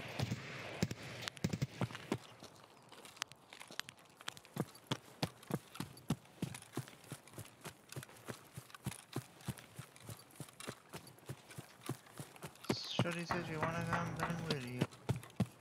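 Footsteps crunch steadily through grass and gravel.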